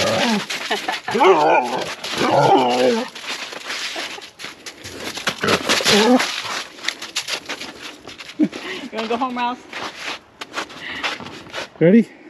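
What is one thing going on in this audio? Footsteps crunch on icy snow.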